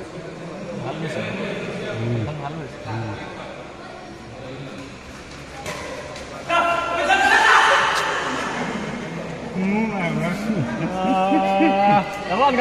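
Men call out and talk loudly during play.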